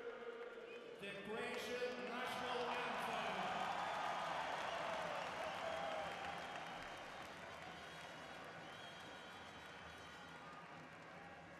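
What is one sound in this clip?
A large crowd sings together in a big echoing arena.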